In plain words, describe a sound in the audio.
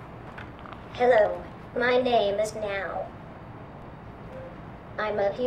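A small robot speaks in a synthetic voice through a small loudspeaker.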